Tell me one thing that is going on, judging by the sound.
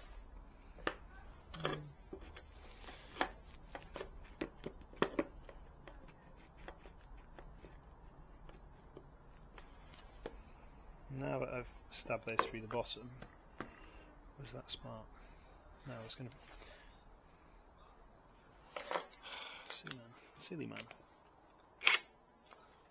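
Small tools and a wooden disc knock and clatter on a workbench.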